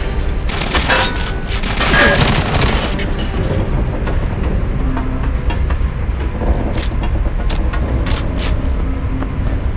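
A submachine gun is reloaded with sharp metallic clicks.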